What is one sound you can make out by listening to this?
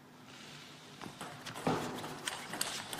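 A ping pong ball clicks off paddles and bounces on a table in a quick rally.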